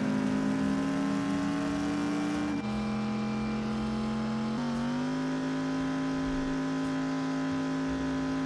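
A car engine roars steadily, shifting gears as it speeds along.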